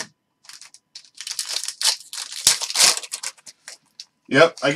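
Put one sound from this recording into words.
A foil card pack crinkles as it is torn open.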